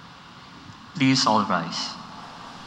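A man speaks loudly through a microphone in an echoing hall.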